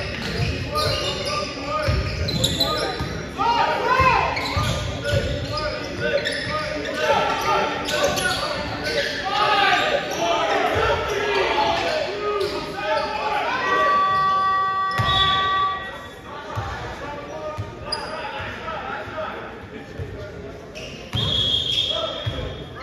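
Young men shout and call out in a large echoing hall.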